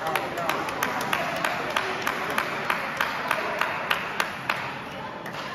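A table tennis ball clicks quickly back and forth off paddles and a table in a large echoing hall.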